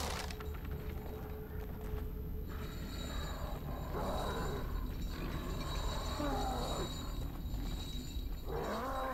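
Footsteps crunch over straw and wooden boards.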